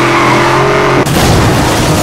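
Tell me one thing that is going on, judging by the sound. A car crashes into another car with a loud crunch of metal.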